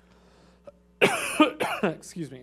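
A young man coughs.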